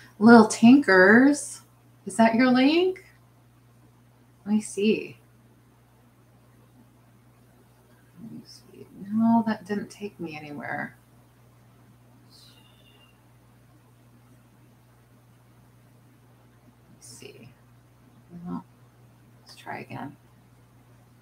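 A middle-aged woman speaks calmly and close by, in short bursts with pauses.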